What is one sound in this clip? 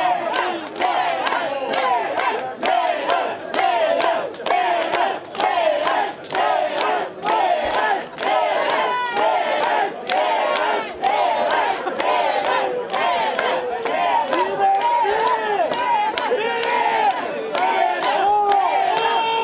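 A drummer keeps a steady beat.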